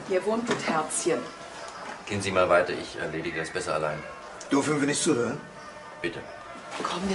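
A man and a woman talk quietly nearby.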